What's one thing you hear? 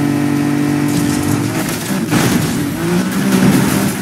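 A car crashes with a loud thump.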